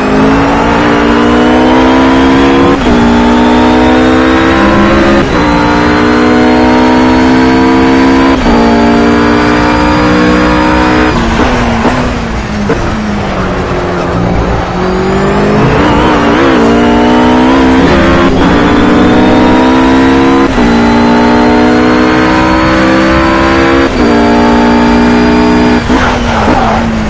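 A GT3 racing car engine revs hard as it accelerates through upshifts.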